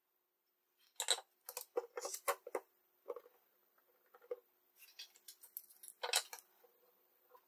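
Small metal parts click and rattle as they are handled.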